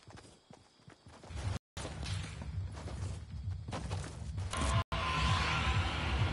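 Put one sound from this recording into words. A pickaxe swishes through the air and thuds.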